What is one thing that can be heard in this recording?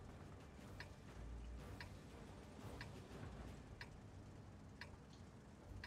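A countdown timer beeps once every second.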